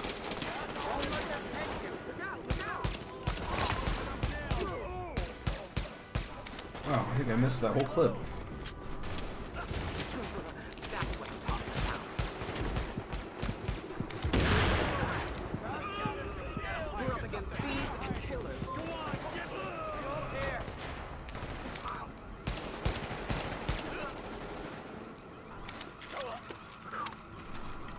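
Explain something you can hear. Rifle shots crack again and again.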